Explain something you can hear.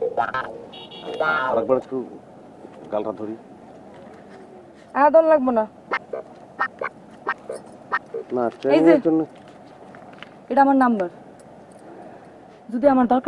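A young woman speaks and laughs, close by.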